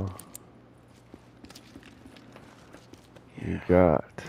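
Footsteps crunch softly on rocky ground.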